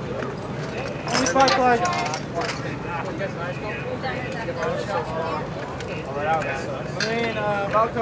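Young men and women talk quietly nearby.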